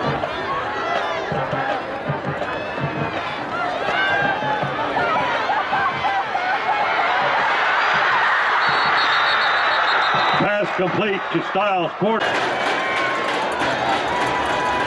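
Men on the sideline shout and call out excitedly.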